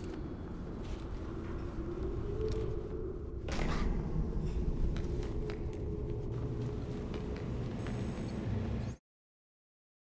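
A large fan whirs with a deep, steady rumble.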